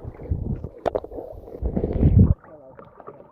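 Water gurgles and rumbles, muffled underwater.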